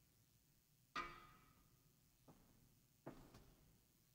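A metal cup clinks against a hard surface.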